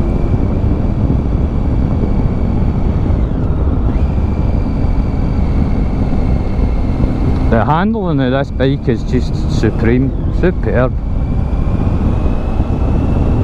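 Wind roars loudly past a moving rider.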